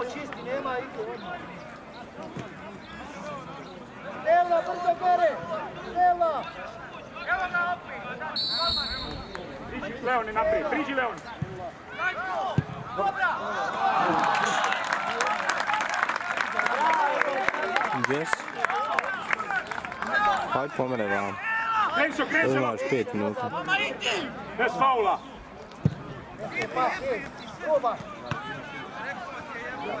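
Men in a crowd talk and call out nearby outdoors.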